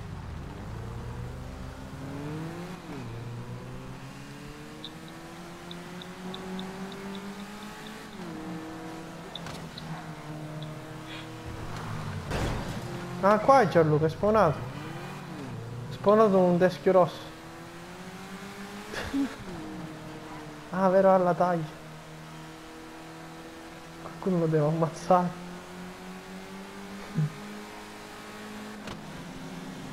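A car engine hums steadily and rises and falls in pitch as the car speeds along.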